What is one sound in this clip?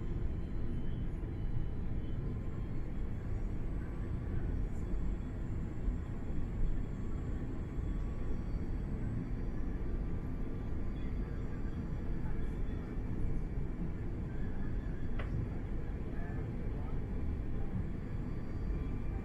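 An aircraft engine roars steadily in the cabin, with a deep rumble.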